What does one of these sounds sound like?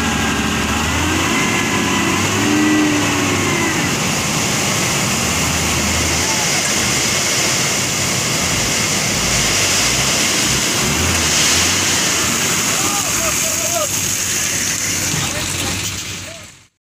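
A large truck engine rumbles steadily close by.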